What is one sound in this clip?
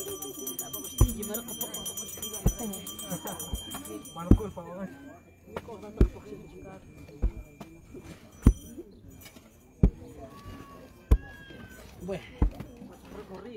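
A wooden pole thuds repeatedly against packed earth.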